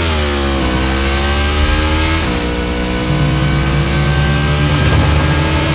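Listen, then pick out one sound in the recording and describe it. A motorcycle engine roars steadily, its pitch rising and dropping as it shifts gears.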